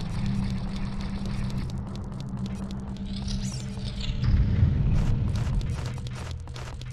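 Footsteps tap quickly on a stone floor.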